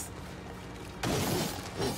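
A magic blast bursts with a bright whoosh.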